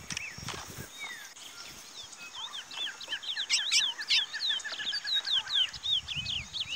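A caged songbird sings a rapid, loud song of chirps and whistles close by.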